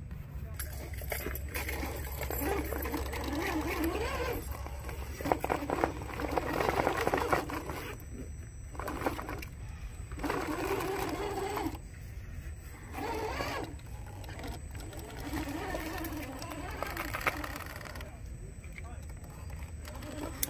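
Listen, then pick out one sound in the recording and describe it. Rubber tyres scrape and grind over rock.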